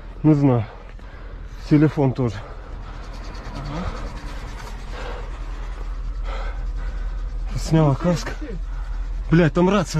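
A young man speaks loudly in short bursts close by.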